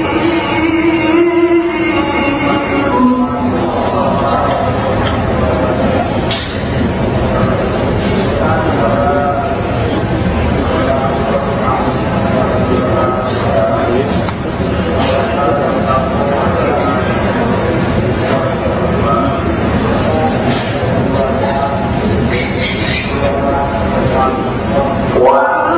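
A young man chants in a long, melodic recitation into a microphone, echoing through a large hall.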